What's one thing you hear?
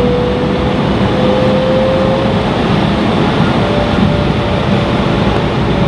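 Tyres rumble over a runway.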